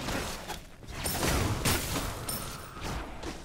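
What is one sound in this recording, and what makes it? Game spell effects whoosh and burst.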